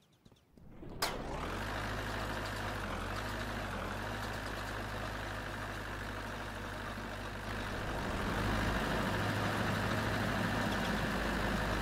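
A tank engine starts with a bang and rumbles steadily.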